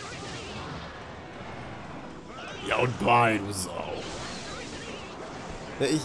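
Cartoonish battle sound effects clash and burst.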